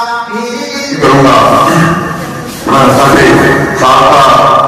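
A middle-aged man speaks steadily into a microphone, heard over a loudspeaker.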